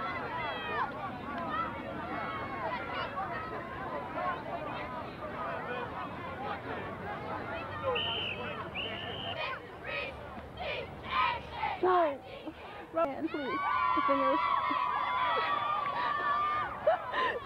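A crowd of spectators chatters and calls out nearby outdoors.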